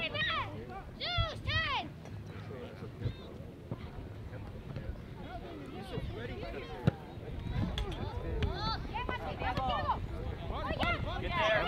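Young players shout and call out across an open field.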